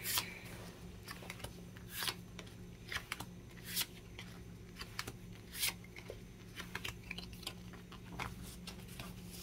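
Stiff playing cards rustle and slide against each other.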